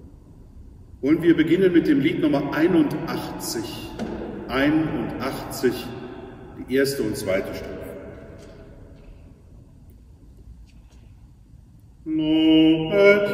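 A middle-aged man chants and sings slowly in a large echoing hall.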